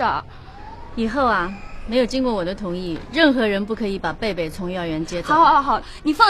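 A middle-aged woman speaks firmly, close by.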